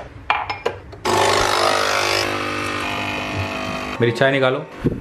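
A coffee machine pump buzzes and whirs loudly.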